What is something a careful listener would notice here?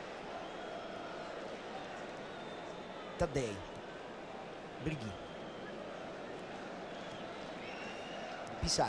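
A large stadium crowd murmurs and chants steadily.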